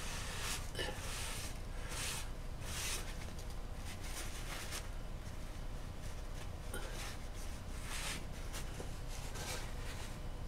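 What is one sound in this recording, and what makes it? Hands rub and brush softly against a paper sculpture.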